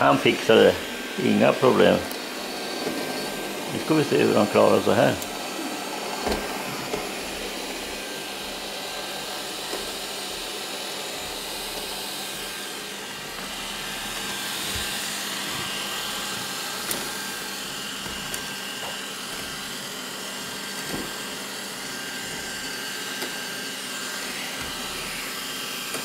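A robot vacuum cleaner hums and whirs steadily as it moves across the floor.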